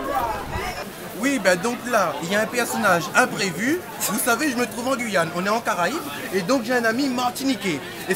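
A market crowd chatters in the background.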